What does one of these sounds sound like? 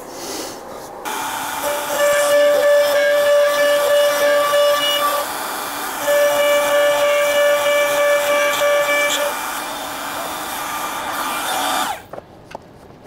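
A router spins at high speed with a steady whine as it cuts into wood.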